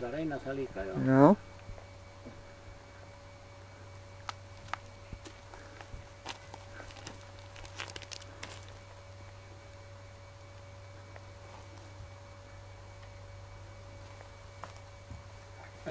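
Small clicks sound as an elderly man handles a metal rod.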